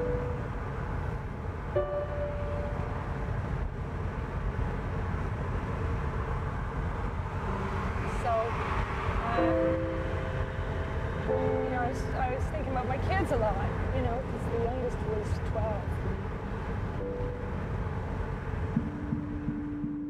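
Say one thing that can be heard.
A car engine hums steadily with road rumble.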